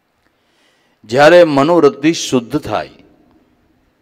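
An elderly man sings in a melodic voice through a microphone and loudspeakers.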